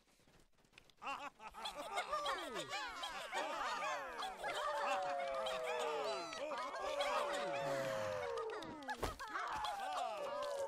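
A small group of pipes and strings plays a lively folk tune.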